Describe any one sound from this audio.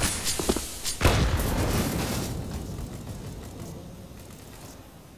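A loud blast booms close by and rumbles away.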